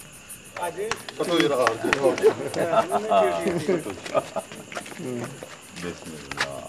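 Several men talk loudly and with animation nearby.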